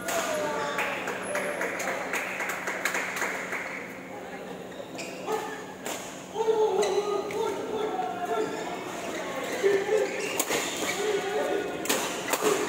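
Shuttlecocks are struck with sharp racket pops.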